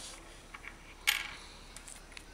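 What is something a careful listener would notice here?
A metal ring clicks down onto a hard block.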